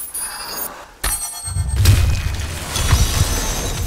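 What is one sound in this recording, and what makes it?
A magical blast booms loudly.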